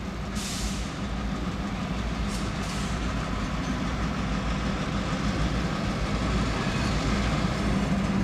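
Diesel freight locomotives idle with a steady low rumble.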